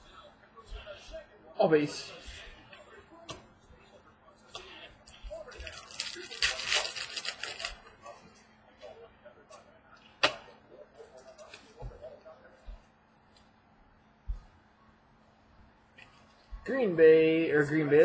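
Trading cards rustle and flick as hands shuffle through them.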